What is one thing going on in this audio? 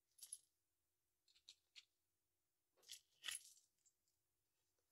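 Plastic toy bricks click and rattle as a hand sorts through them.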